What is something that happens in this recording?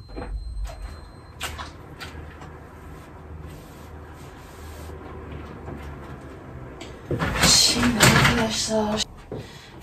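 A woman's footsteps move across the floor.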